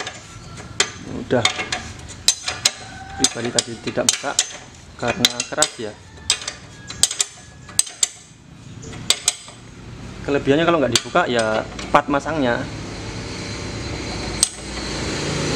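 A metal wrench clinks and taps against bike parts.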